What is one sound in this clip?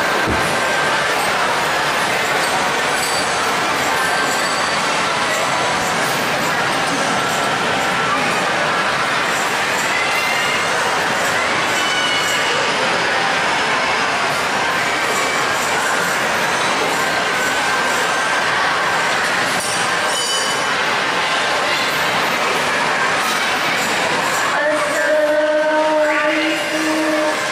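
Frame drums are beaten in a fast, busy rhythm.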